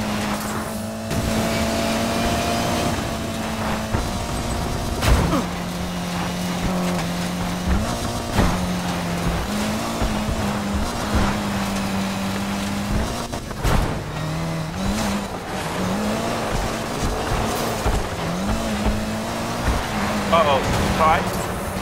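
A car engine roars steadily at high speed, shifting gears up and down.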